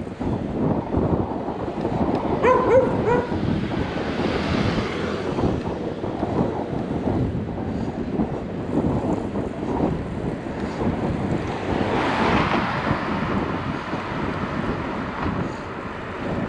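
Wind rushes and buffets loudly past a moving rider.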